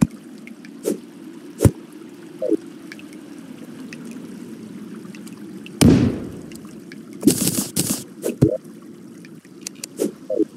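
A short game menu sound chirps as a menu opens and closes.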